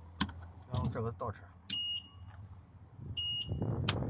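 Switches click on a vehicle's dashboard.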